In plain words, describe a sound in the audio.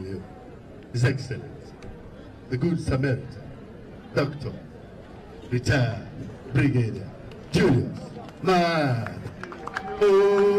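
A man speaks loudly into a microphone in short bursts, echoing outdoors.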